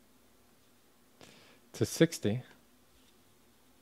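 Trading cards rustle and slide against each other in a person's hands.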